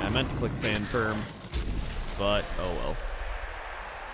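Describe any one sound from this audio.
Armoured players crash together in a heavy tackle.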